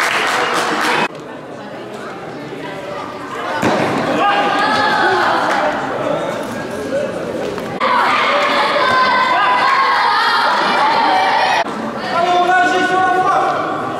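Children chatter and call out nearby in a large echoing hall.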